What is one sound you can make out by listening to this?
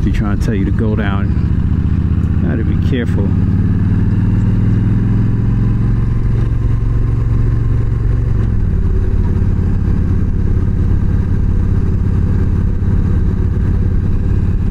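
A motorcycle engine hums steadily as the bike rides along, dropping in pitch at a gear change.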